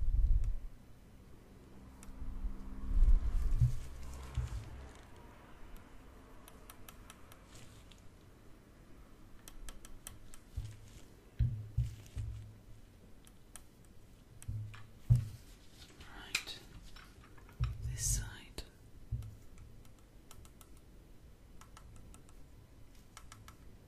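A young woman whispers softly close to the microphone.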